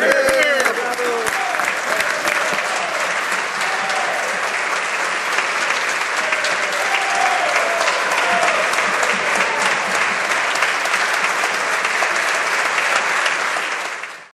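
A crowd claps loudly in a large echoing hall.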